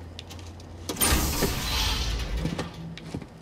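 A heavy metal door slides open with a loud hiss.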